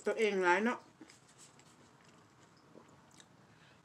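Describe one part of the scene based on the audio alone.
A woman sips a hot drink from a mug.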